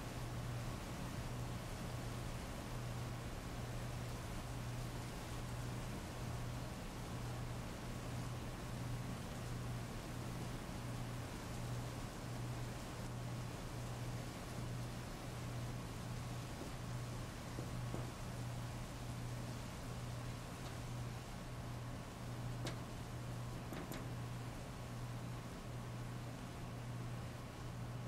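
Heavy rain pours steadily onto a paved street outdoors.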